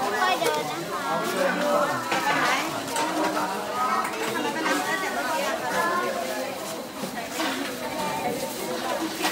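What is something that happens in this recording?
Children and adults chatter all around outdoors.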